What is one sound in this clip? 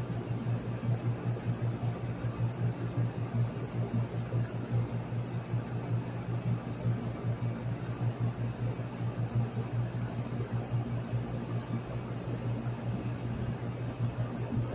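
A large fan hums and whirs steadily with a low, pulsing drone.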